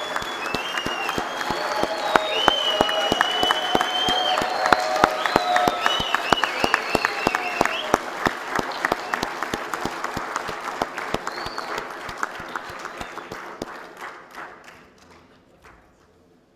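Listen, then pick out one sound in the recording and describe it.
A crowd applauds in a large echoing hall and slowly fades.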